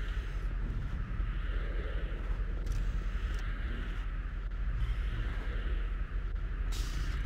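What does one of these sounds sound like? A man talks into a microphone.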